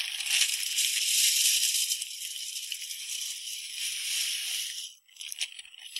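Grain pours steadily from a bag into a metal feeder.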